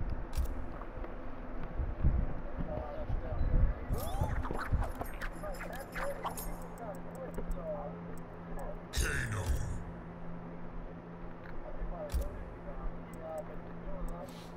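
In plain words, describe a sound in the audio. Short menu blips sound as a selection cursor moves between choices.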